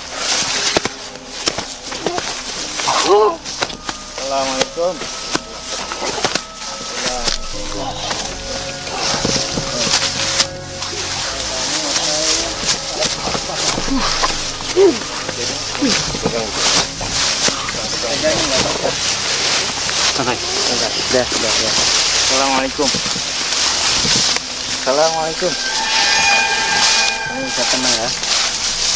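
Young men shout and talk excitedly, close by.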